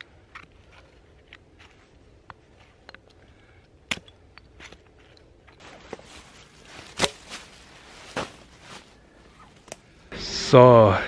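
Split pieces of firewood knock and clatter together.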